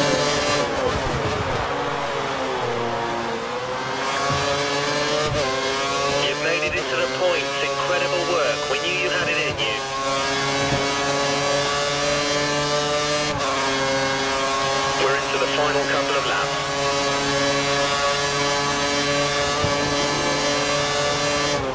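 A racing car engine screams at high revs, dropping in pitch on downshifts and rising again as it speeds up.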